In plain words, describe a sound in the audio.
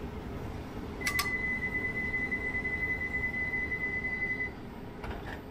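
A door warning tone beeps steadily, then stops.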